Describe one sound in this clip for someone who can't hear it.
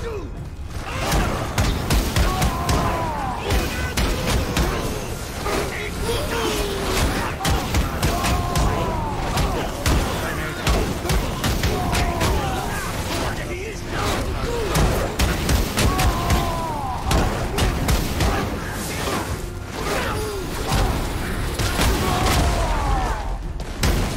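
Weapons clash and thud in a fierce fight.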